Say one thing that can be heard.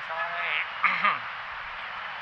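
A man speaks briefly into a nearby microphone.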